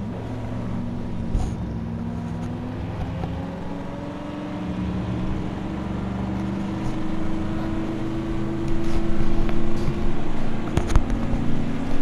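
A race car engine idles with a low, steady rumble.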